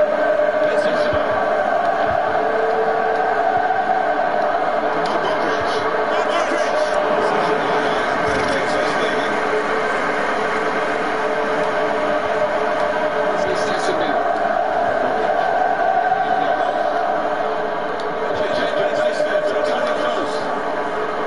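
A football is kicked with soft thuds.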